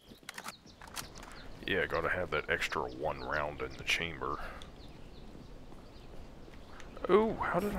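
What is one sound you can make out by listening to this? Footsteps crunch on pavement and gravel.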